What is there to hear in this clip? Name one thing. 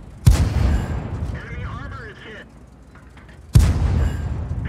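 A tank cannon fires with a loud boom that rumbles away.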